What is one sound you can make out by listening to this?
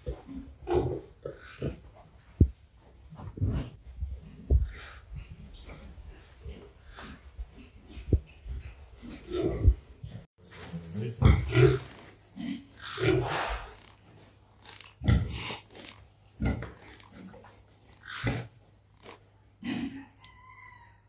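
A pig squeals and grunts in loud bursts.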